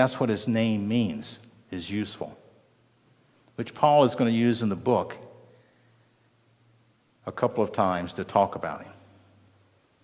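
An older man speaks slowly and calmly through a microphone, with pauses.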